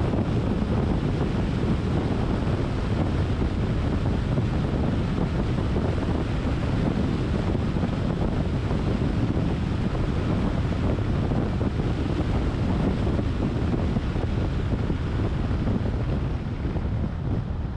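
Tyres roll on smooth asphalt with a steady low rumble.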